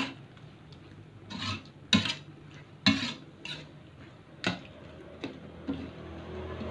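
A metal spatula scrapes and clangs against a metal wok.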